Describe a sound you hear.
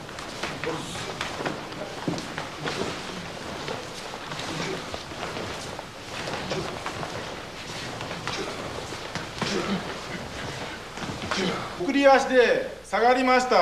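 Bare feet shuffle and thump on a mat.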